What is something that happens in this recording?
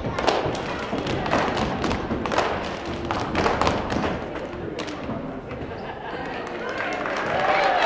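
Young women chant loudly in unison in a large echoing gym.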